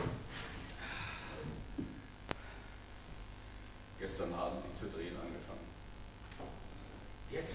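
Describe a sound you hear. A woman speaks, heard from a distance in a large hall.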